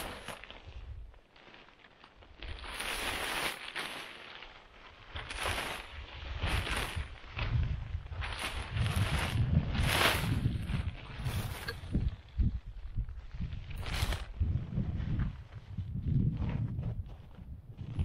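Stiff fabric rustles and flaps as a man shakes out a tarp.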